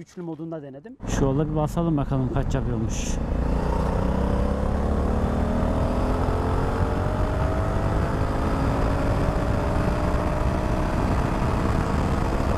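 A motorcycle engine roars and revs higher as it speeds up.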